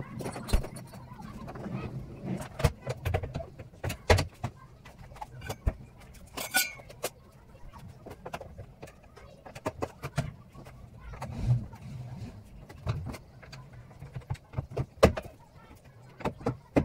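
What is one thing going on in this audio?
Wooden boards knock and clatter as a young man handles them.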